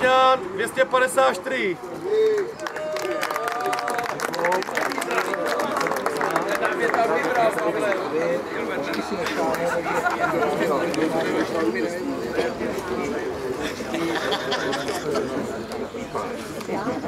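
A crowd of adult men and women chatter and talk over one another outdoors.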